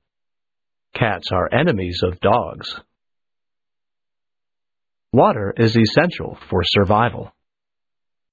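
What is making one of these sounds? A young man speaks calmly, close to a microphone.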